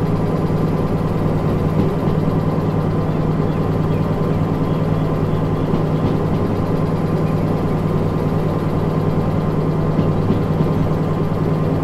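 A diesel locomotive engine hums and rumbles steadily.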